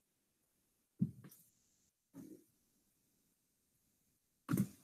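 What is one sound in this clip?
A pen bumps and scratches softly on paper.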